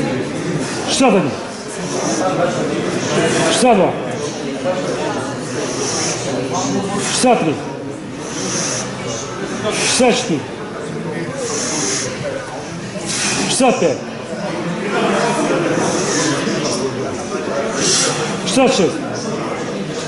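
A man grunts sharply with effort, again and again.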